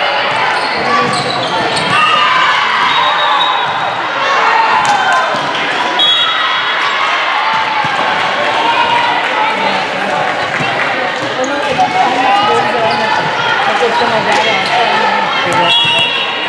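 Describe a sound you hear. A crowd of young women and spectators cheers and shouts in a large echoing gym.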